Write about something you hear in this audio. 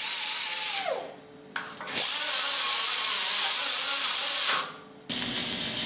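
An angle grinder whines and grinds against metal.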